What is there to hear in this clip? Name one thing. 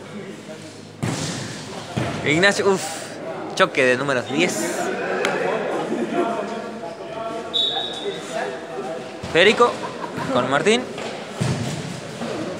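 A ball is kicked and thuds on the floor.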